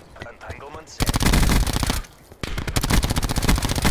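A gun fires loud rapid bursts.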